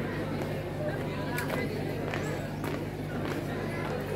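Boots stamp on hard pavement in a marching rhythm.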